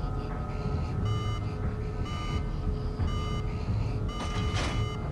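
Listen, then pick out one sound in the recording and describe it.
An alarm beeps in short, repeated bursts.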